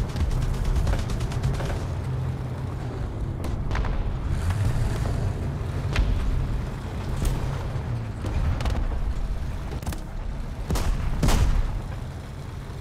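A heavy tank engine rumbles and clanks steadily.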